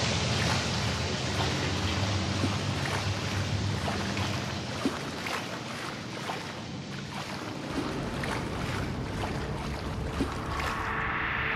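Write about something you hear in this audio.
Footsteps tread steadily on a hard floor.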